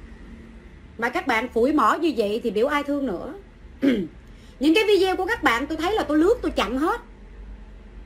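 A young woman sings close by.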